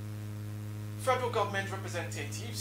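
A man speaks clearly into a microphone, like a news presenter.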